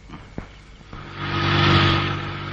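A car engine starts up and runs.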